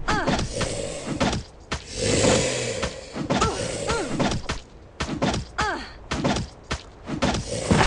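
Weapon blows thud and slash repeatedly in a fight.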